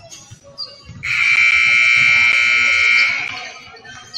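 A loud buzzer sounds steadily for about two seconds in a large echoing gym.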